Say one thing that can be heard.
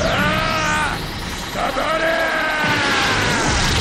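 A man yells fiercely.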